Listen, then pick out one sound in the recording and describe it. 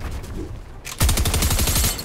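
A gun fires in a rapid, rattling burst.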